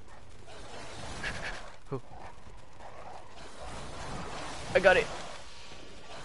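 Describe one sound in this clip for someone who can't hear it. A creature snarls and shrieks during a fight.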